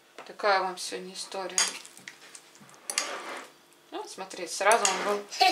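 A fork scrapes and taps against a plate while mashing soft food.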